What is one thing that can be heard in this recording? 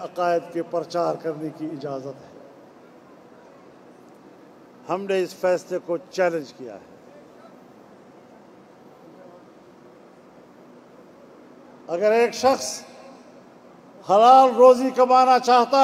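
An elderly man speaks forcefully into a microphone over a loudspeaker, with pauses between phrases.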